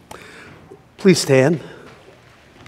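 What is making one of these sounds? A middle-aged man speaks aloud with animation in a large echoing hall.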